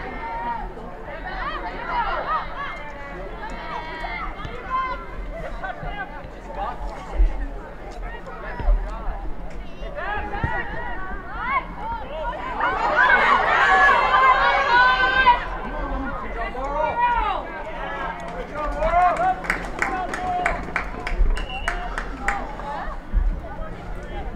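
A crowd of spectators cheers and shouts outdoors, swelling loudest for a few seconds.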